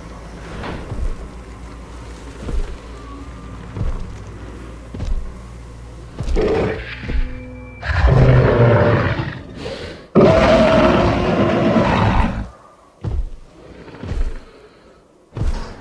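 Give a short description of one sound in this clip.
A large dinosaur stomps heavily with booming footsteps.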